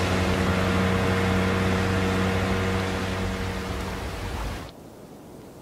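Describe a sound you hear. Water splashes and sprays behind a speeding boat.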